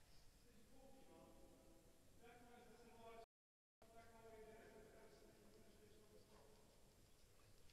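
A man talks nearby in an echoing indoor hall.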